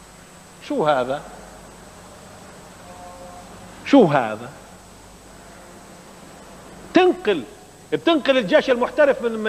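A man speaks loudly and with animation in short bursts, in a room with some echo.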